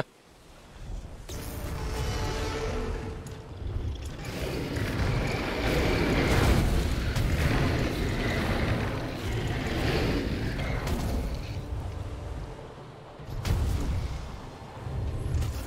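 Fire roars and rumbles loudly.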